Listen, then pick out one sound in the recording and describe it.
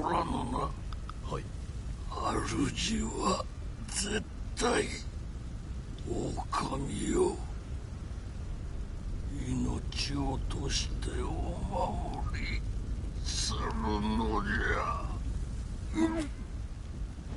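An elderly man speaks weakly and haltingly.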